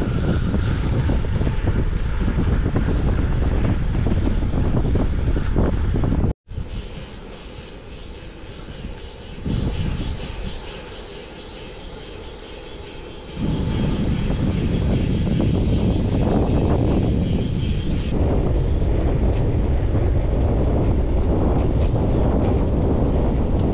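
Wind rushes loudly against the microphone outdoors.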